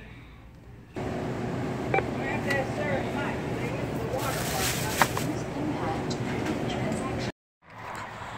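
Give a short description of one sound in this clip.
A self-checkout machine hums steadily.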